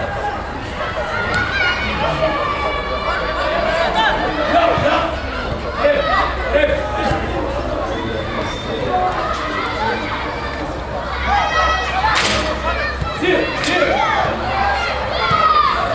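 Men shout and call out to each other outdoors across an open field.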